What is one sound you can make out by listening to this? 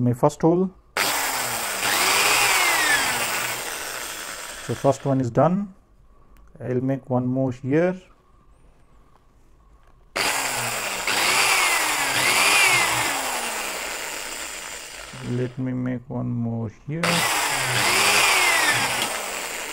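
A small electric drill whirs as it bores into a board.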